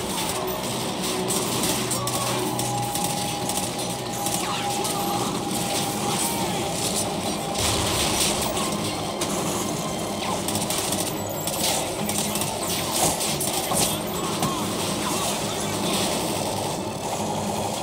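A helicopter's rotor thuds overhead.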